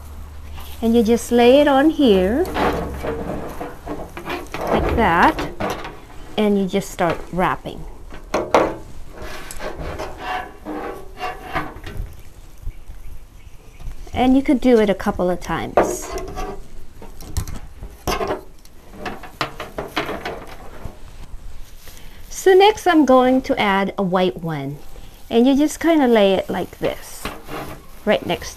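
A woman speaks calmly and close, through a clip-on microphone.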